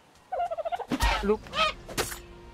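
A wooden club thumps against a bird.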